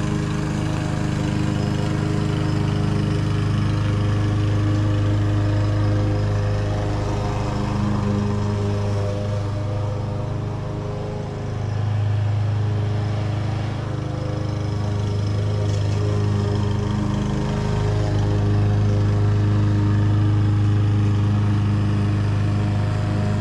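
A lawn mower engine drones steadily nearby, rising and falling as it moves.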